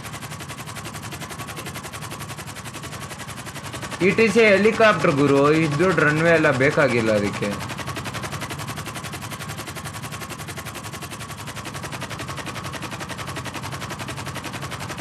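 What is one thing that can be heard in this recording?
A helicopter's rotor chops steadily overhead.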